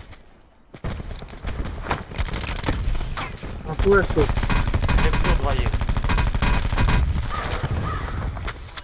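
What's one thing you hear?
Rapid gunfire rattles in bursts close by.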